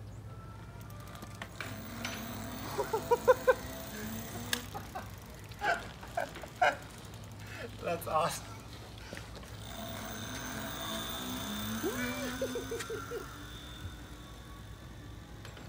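An electric bicycle motor whirs softly.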